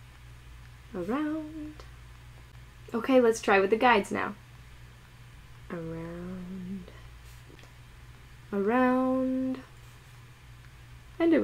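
A young woman speaks slowly and clearly, close to a microphone, drawing out her words.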